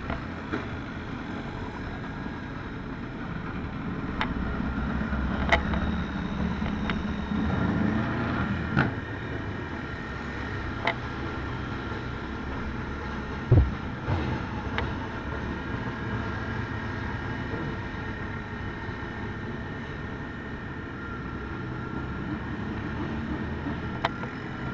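A quad bike engine hums close by.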